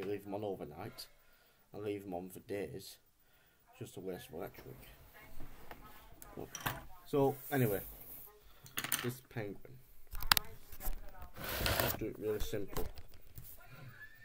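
A young man talks casually, close up.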